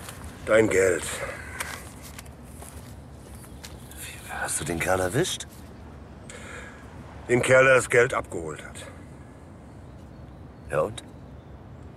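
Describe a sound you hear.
A middle-aged man speaks in a hushed, tense voice close by.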